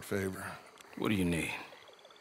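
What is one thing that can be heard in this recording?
An older man answers in a rough, calm voice close by.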